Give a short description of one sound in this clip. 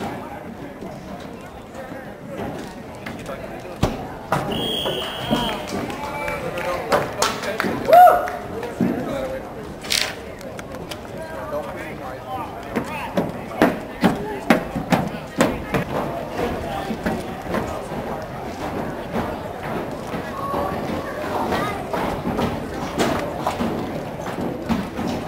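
Young men shout and call out across an open outdoor field in the distance.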